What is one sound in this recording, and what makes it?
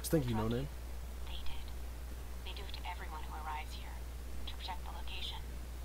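A young woman speaks with animation through a small device speaker.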